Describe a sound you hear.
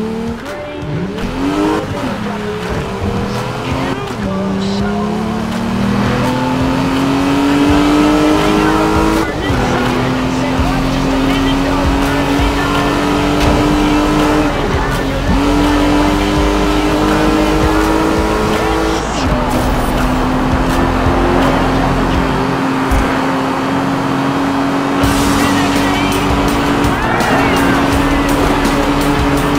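A sports car engine roars and revs up through the gears.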